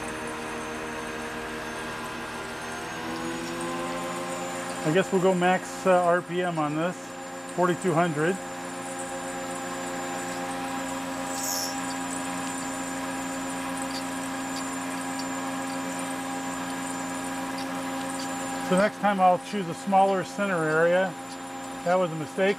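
A cutter grinds through metal.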